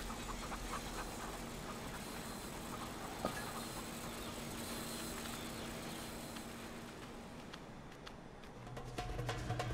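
A small animal's paws patter softly on the ground.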